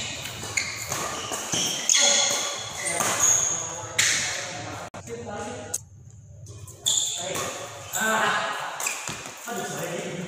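A badminton racket hits a shuttlecock in an echoing indoor hall.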